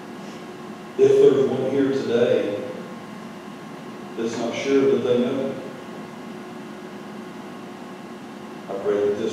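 A man speaks slowly and calmly through a microphone in a large echoing hall, with long pauses.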